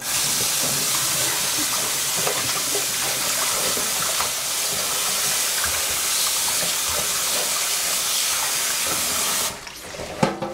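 Tap water runs steadily into a metal pot.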